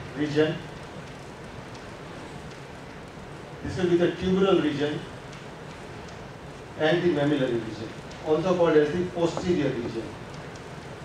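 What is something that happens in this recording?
A man speaks calmly in short phrases.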